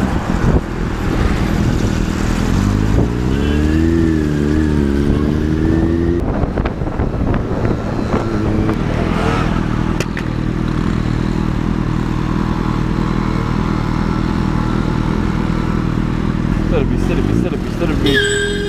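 Traffic rumbles along a busy street.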